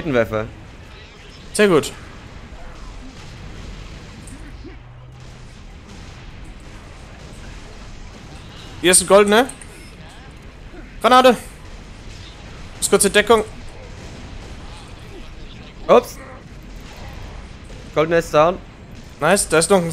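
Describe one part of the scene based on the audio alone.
Energy weapons fire in short, sharp bursts.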